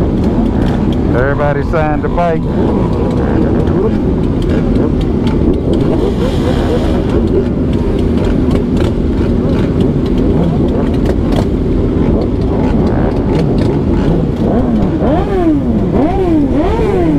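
Motorcycle engines rev up and down sharply.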